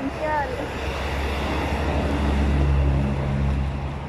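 A bus drives past.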